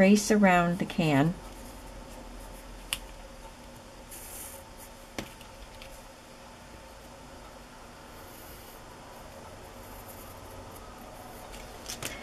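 A pencil scratches lightly across cardboard.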